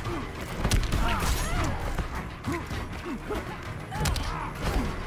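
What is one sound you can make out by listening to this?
Punches and kicks land with heavy, sharp thuds.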